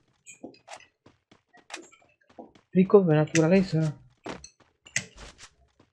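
Footsteps patter quickly while running.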